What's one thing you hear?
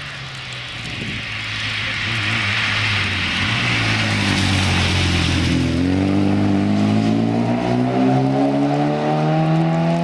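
A four-cylinder rally car approaches and then accelerates hard away.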